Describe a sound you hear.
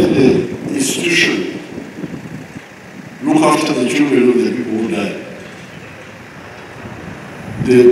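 An elderly man speaks slowly and deliberately into a microphone over a loudspeaker, outdoors.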